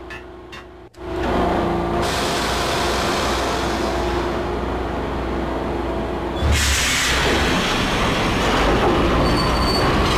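A subway train rumbles and hums loudly as it moves off.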